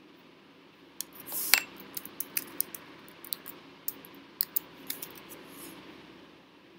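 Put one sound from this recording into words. Keys on a keyboard click rapidly.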